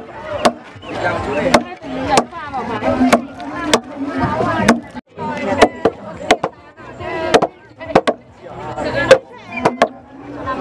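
A crowd of people chatter and talk nearby, outdoors.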